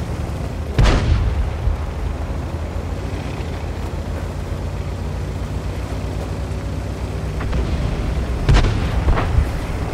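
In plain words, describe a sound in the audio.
A tank engine rumbles low and steady as the tank drives.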